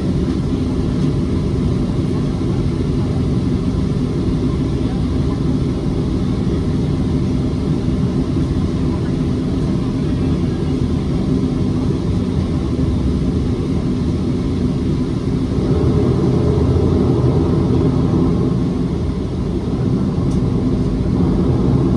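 A low rumble of wheels rolling over the tarmac shakes the cabin.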